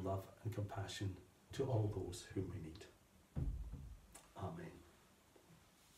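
A man speaks calmly and clearly, reading aloud nearby.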